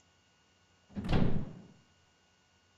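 A heavy door slams shut with a deep thud.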